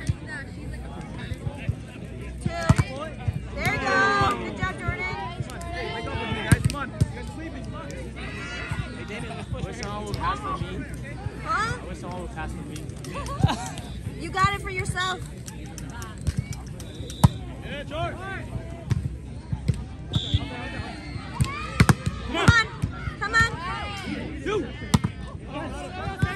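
A crowd of young men and women chatter and shout outdoors.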